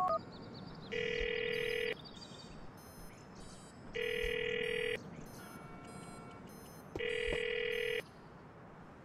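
A phone ringback tone purrs in repeated bursts.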